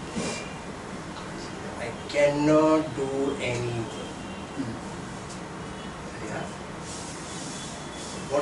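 A middle-aged man speaks calmly and slowly, with pauses.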